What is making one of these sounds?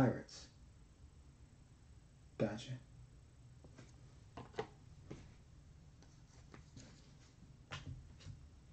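Trading cards rustle and slide against each other in a person's hands.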